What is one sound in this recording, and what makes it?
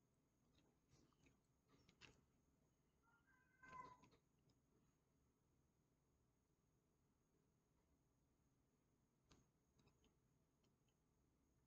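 Cards slide softly on a table.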